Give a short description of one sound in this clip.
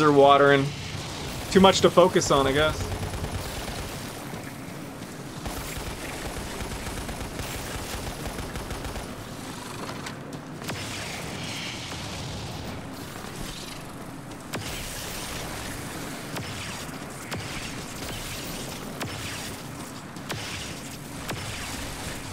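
Video game gunfire rattles in bursts.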